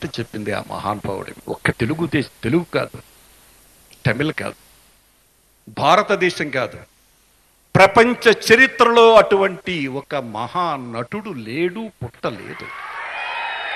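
A middle-aged man speaks forcefully into a microphone over loudspeakers.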